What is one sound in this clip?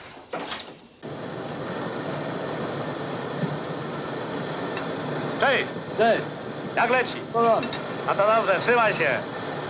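A lathe hums and whirs steadily.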